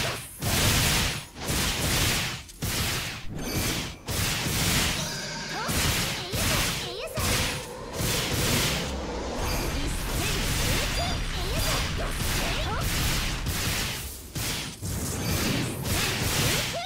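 Loud magical blasts and whooshing strikes crash over and over.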